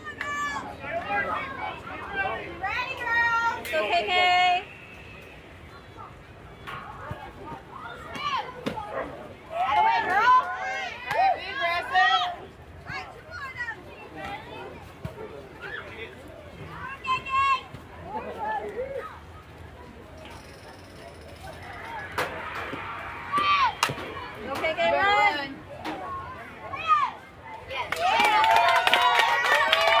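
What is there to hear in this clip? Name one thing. Young girls shout and chant loudly nearby.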